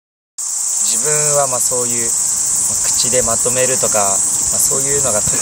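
A young man speaks calmly into a microphone close by.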